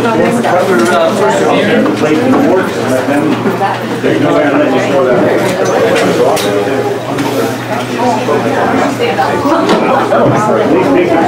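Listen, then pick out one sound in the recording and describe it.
Many men and women chat at once with animation, their voices overlapping.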